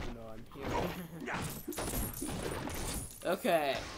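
Objects break apart with a clattering crash.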